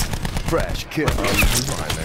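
A single sniper rifle shot booms.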